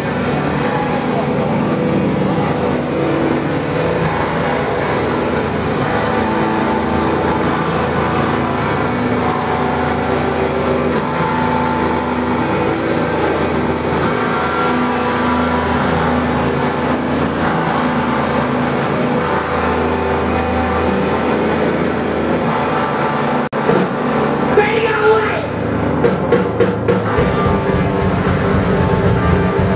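Drums beat steadily.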